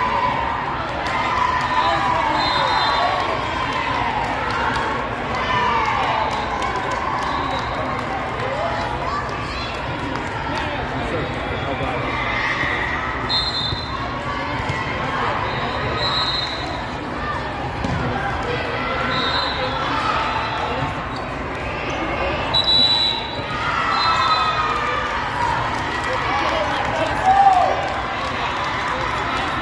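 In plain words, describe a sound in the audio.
Many voices chatter and call out across a large echoing hall.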